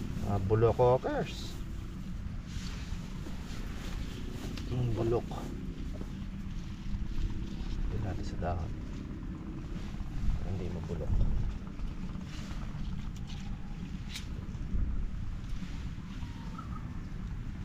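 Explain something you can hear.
Leaves rustle softly close by.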